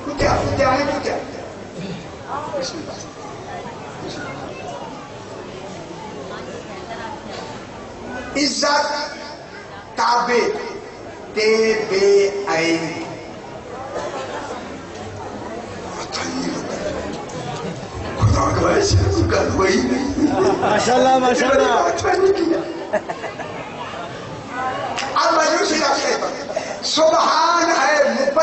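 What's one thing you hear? An elderly man speaks with emotion into a microphone, heard through loudspeakers in an echoing space.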